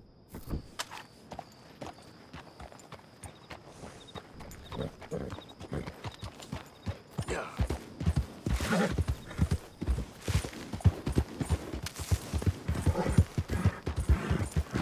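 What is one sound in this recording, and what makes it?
Horse hooves thud on grass and dirt at a steady gallop.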